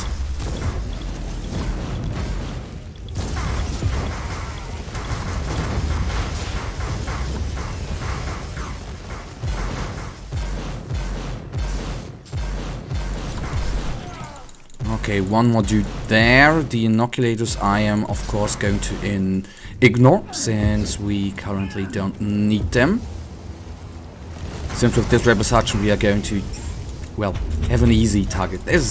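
Gunfire and explosions crackle and boom in a game battle.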